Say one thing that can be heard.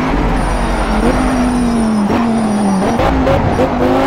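A sports car engine drops in pitch as it slows for a bend.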